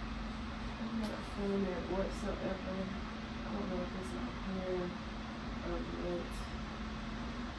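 A young woman hums softly close by.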